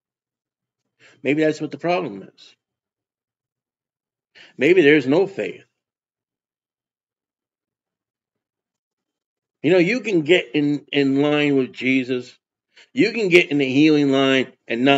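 A middle-aged man speaks calmly and earnestly into a close microphone, with pauses.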